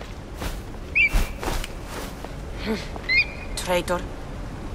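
An eagle screeches.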